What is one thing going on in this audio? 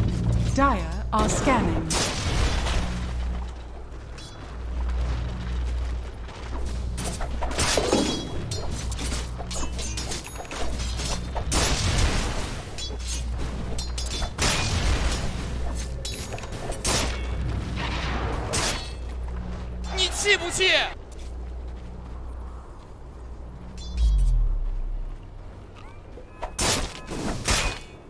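Fantasy battle sound effects of weapons striking and spells bursting come in sharp, repeated bursts.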